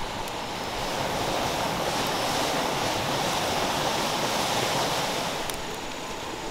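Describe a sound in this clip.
A wood fire crackles and hisses.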